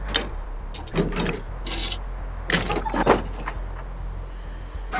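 Items rattle as someone rummages inside a chest.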